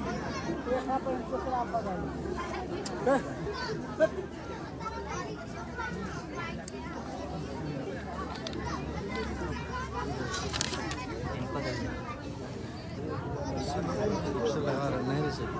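A crowd of men and women talks in overlapping voices close by.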